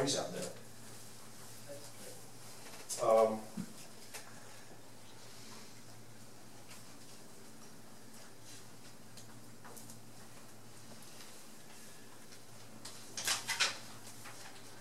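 A man speaks briefly through a microphone and loudspeaker in an echoing room.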